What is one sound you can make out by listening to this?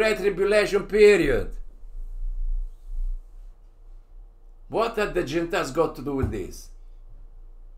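An elderly man speaks calmly into a close microphone.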